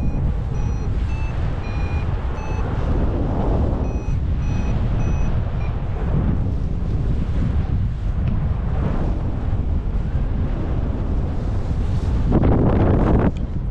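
Strong wind rushes and buffets steadily outdoors.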